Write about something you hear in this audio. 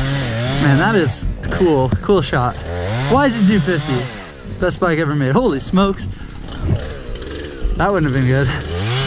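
A young man talks with animation outdoors.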